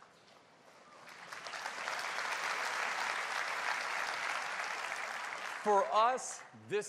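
A large audience applauds and cheers in a big hall.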